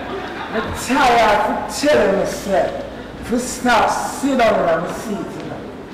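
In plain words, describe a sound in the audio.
A man laughs loudly.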